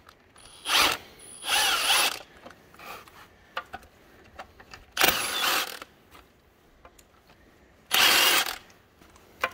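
A cordless impact wrench rattles in short, loud bursts.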